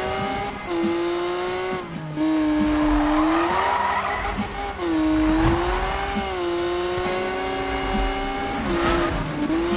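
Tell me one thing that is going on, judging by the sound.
A car engine roars and revs up and down steadily.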